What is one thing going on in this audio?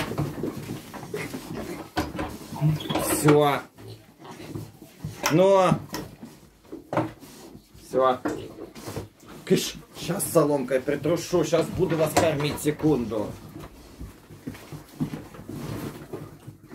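Pigs grunt and snuffle close by.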